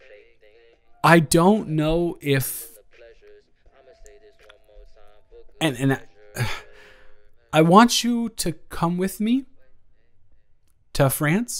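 A young man speaks with animation.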